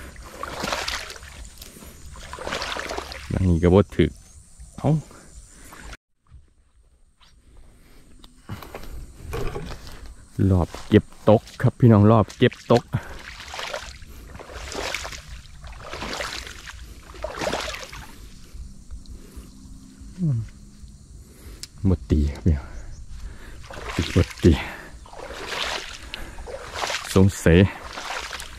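Footsteps squelch and swish through wet marsh grass.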